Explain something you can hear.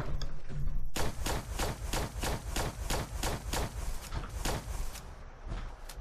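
A gun fires in a rapid burst of shots.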